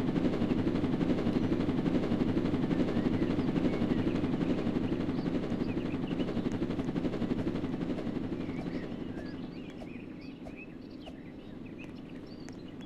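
A helicopter's rotor whirs nearby and slowly fades.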